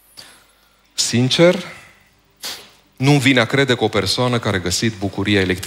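A middle-aged man speaks calmly through a microphone in a large echoing hall.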